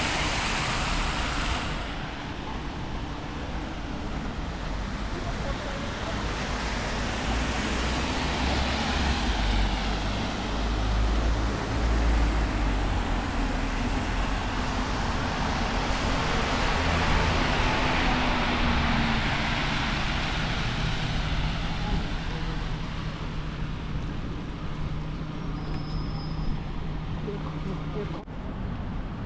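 Steady city traffic noise fills the air outdoors.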